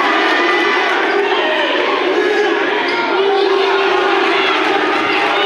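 A crowd of spectators chatters and cheers in a large echoing gym.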